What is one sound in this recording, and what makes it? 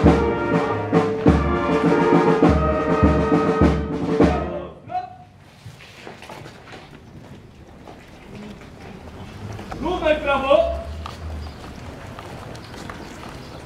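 Boots shuffle and tramp on pavement as a group marches.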